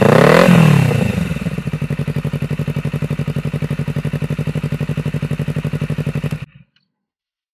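A motorcycle engine idles with a rapid, lumpy burble through the exhaust, then cuts off.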